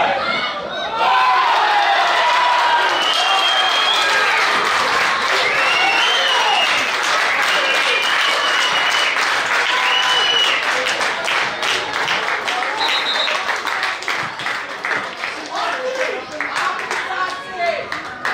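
Men shout and cheer excitedly outdoors.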